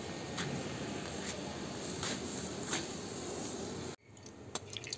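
A firework fizzes and crackles steadily.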